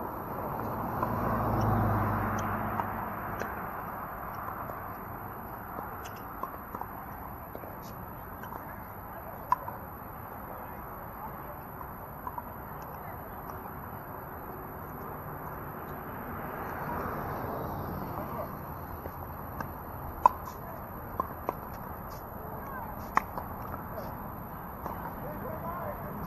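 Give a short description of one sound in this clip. Plastic paddles pop against a hard ball, sharp and repeated.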